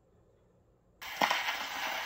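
A gramophone record plays with loud crackling hiss.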